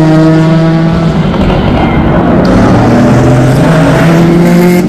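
A race car engine roars past close by, rising in pitch.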